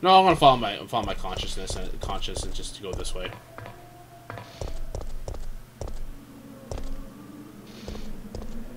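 Quick footsteps run across a hard, gritty floor.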